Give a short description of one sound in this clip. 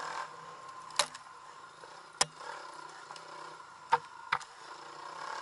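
A dirt bike jolts and thumps over bumps in a trail.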